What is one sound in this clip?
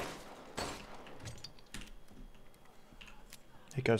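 A pistol clicks as it is reloaded.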